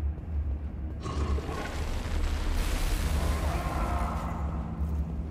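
A fiery explosion roars and crackles.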